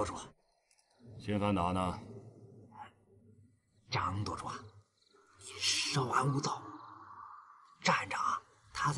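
A man talks with animation and a teasing tone nearby.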